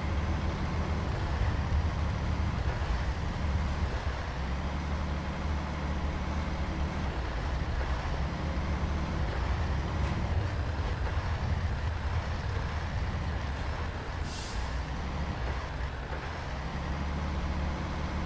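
A heavy truck engine rumbles steadily as the truck drives over rough ground.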